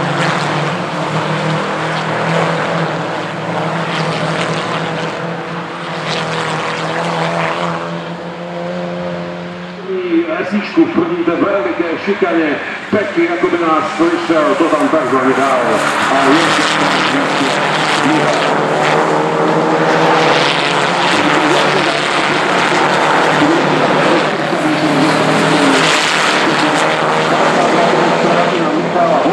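Racing car engines roar loudly as the cars speed past.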